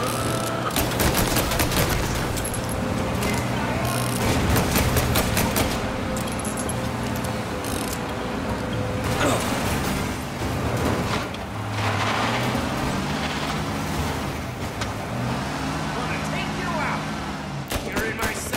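A car engine roars while driving fast.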